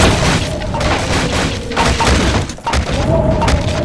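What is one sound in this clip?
Wooden planks clatter and break apart.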